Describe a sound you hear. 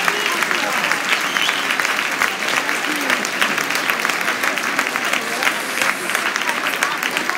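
A large crowd cheers and chatters loudly in a big echoing hall.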